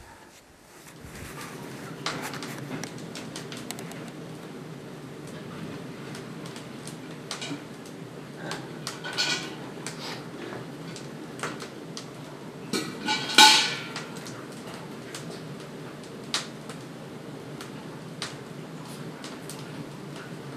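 A wood-fired evaporator boils with a steady low roar.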